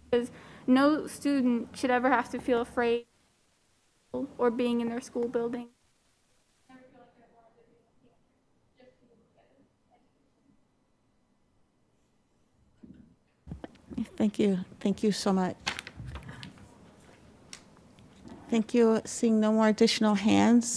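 A young girl speaks calmly into a microphone, with pauses.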